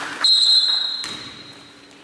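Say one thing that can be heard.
A referee's whistle blows in an echoing gym.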